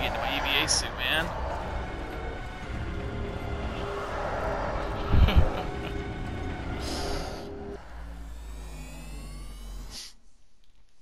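A deep dramatic game tone swells and fades.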